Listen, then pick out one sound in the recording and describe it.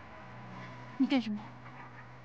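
A young woman makes a short, wavering vocal sound close by.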